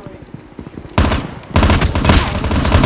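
Gunfire from a rifle rattles in rapid bursts.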